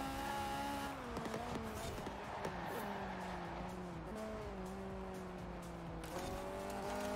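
A car engine winds down as the car slows for a bend.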